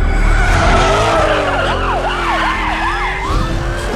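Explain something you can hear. An engine roars loudly.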